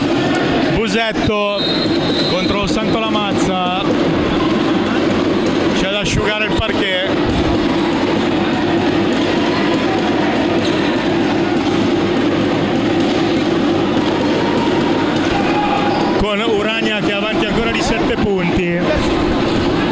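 Sneakers squeak sharply on a court in a large echoing hall.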